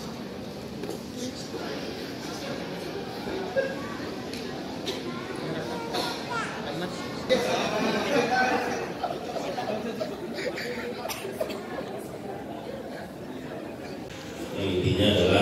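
A crowd of children and adults chatters in an echoing hall.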